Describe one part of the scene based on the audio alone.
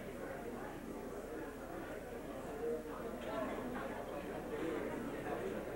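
An audience murmurs and chatters in a large echoing hall.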